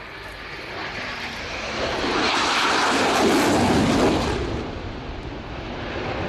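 A jet engine roars loudly overhead, swelling as the jet passes and then fading.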